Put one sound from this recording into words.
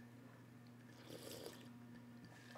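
A man sips a drink from a mug.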